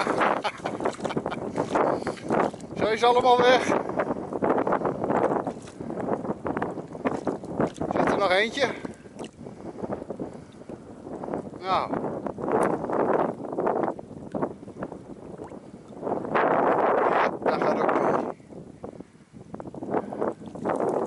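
A dog splashes through shallow water at the edge of a lake.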